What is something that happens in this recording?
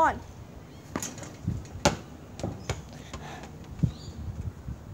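A ball bounces on hard ground.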